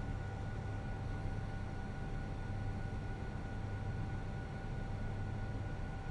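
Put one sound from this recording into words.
Jet engines drone steadily in flight.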